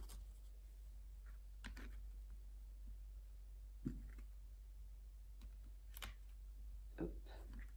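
Cards tap softly onto a cloth-covered table.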